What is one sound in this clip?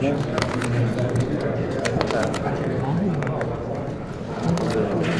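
Papers rustle close by.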